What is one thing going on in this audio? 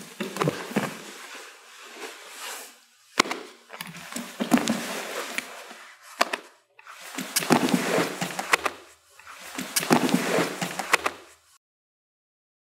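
A man explains calmly, close by.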